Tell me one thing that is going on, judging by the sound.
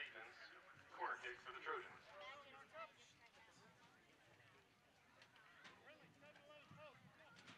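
Young women shout across an open field.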